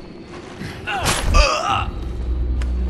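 A heavy thud and clatter sounds as a figure drops down.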